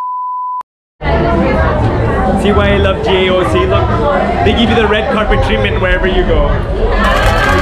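A crowd chatters loudly in a busy room.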